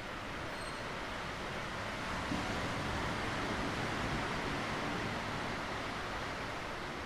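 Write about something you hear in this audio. Waves wash over a rocky shore outdoors.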